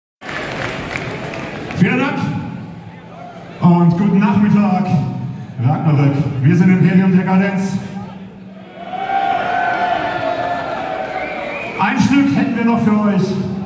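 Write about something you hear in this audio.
A singer sings through a microphone.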